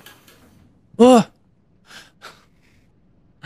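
A man yelps and laughs loudly into a close microphone.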